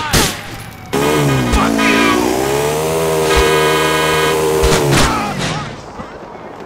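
A motorbike engine revs.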